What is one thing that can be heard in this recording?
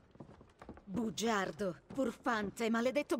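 A woman shouts angrily nearby.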